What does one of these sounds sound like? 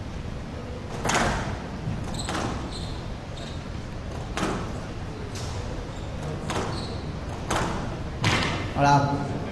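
A squash ball smacks sharply against the walls of an echoing court, again and again.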